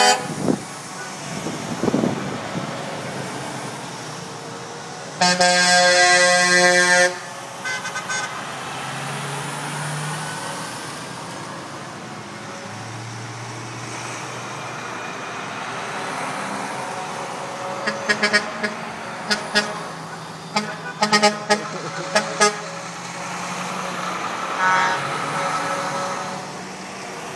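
Heavy trucks and cars drive past one after another, engines rumbling and tyres humming.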